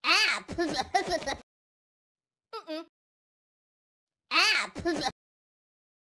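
A cartoon cat squeals in a high, silly voice.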